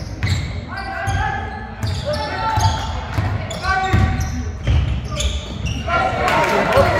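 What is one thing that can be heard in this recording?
Young players shout to each other in an echoing sports hall.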